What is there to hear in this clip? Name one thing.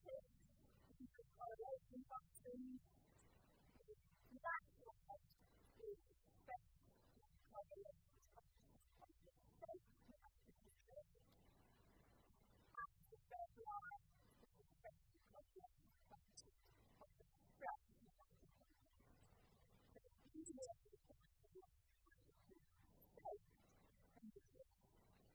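A woman lectures calmly through a microphone.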